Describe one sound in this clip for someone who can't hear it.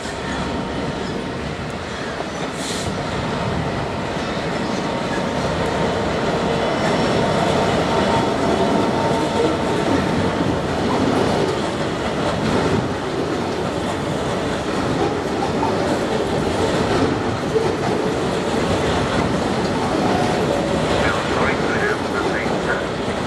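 Freight wagons clatter and squeal over the rail joints.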